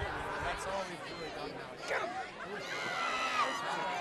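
A crowd of spectators cheers loudly in the distance.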